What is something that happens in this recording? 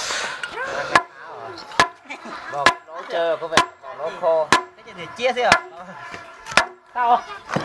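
A hand tool knocks sharply against a wooden beam.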